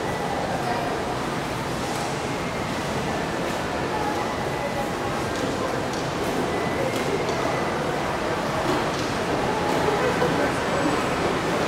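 Escalators run with a steady low hum.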